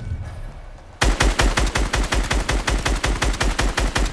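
Rapid gunshots fire in a fast steady burst.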